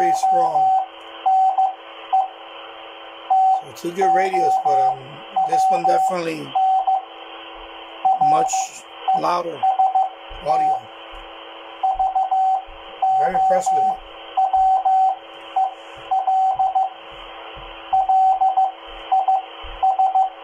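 A radio beeps a steady tone in short bursts, like Morse code.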